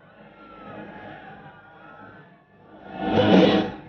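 A large crowd cheers and shouts, swelling to a loud roar.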